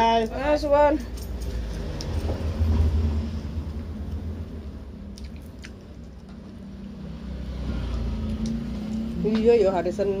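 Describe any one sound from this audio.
A young woman chews food.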